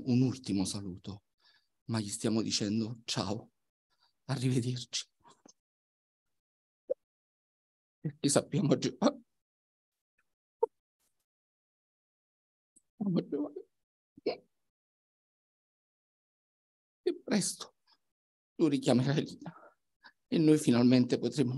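A man speaks slowly and calmly into a microphone, in short phrases with long pauses.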